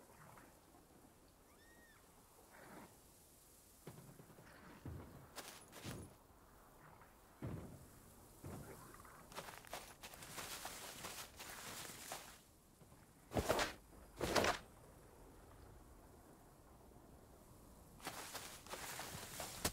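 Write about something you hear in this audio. Leaves and branches rustle as someone pushes through dense bushes.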